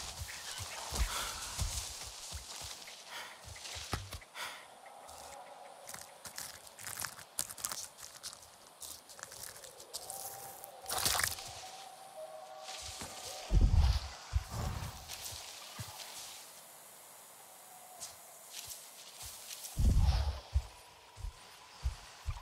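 Footsteps rustle through dense leafy plants.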